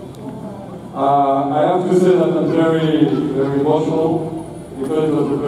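A man speaks animatedly into a microphone over a loudspeaker, echoing in a large hall.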